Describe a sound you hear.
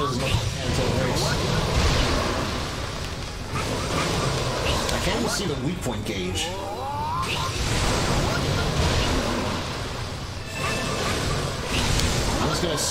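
Magic blasts roar and crackle with a deep rumble.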